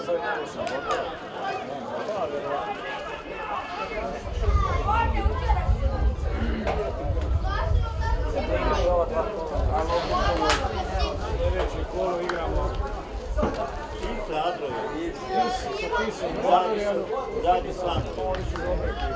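A crowd of spectators chatters and calls out nearby, outdoors.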